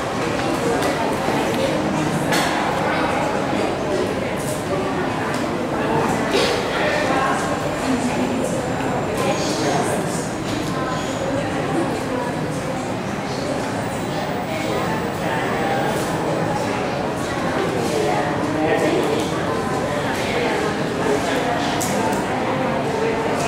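A young man speaks into a microphone in an echoing room.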